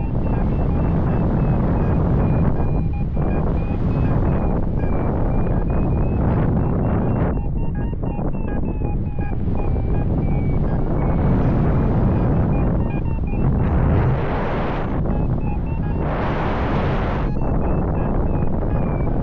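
Strong wind rushes and buffets loudly, outdoors high in the air.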